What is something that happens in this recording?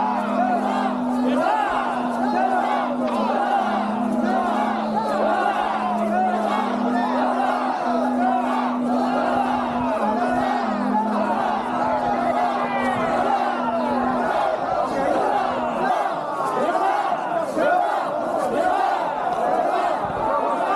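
A large crowd of men and women shouts and cheers loudly outdoors.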